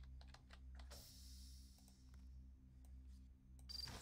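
A card swipes through a reader with a short electronic sound.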